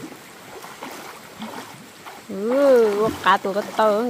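Water splashes as a man swims in a river.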